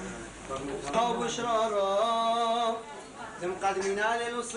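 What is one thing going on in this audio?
A man chants in a steady, singing voice.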